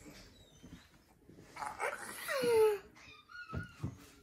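A young boy laughs.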